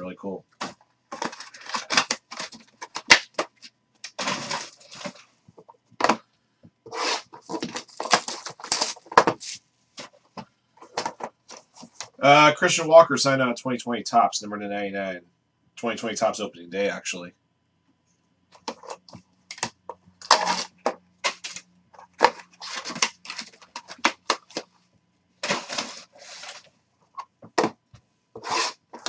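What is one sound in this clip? Cardboard boxes rustle and scrape as hands open them.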